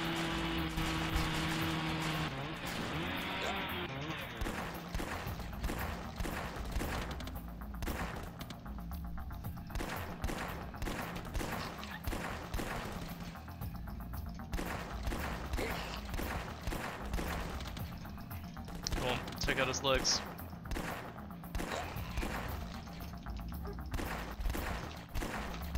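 Guns fire in rapid, sharp bursts.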